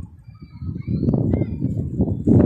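Birds chirp faintly in the distance.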